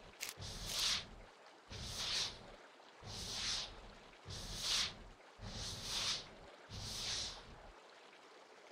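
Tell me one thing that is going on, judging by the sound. Clothing rustles in short, regular bursts.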